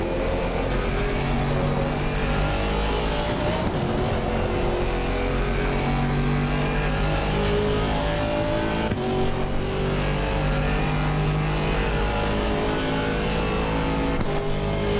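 A racing car engine roars steadily, shifting pitch as the gears change.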